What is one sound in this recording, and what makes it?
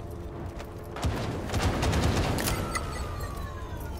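An explosion booms and rumbles loudly.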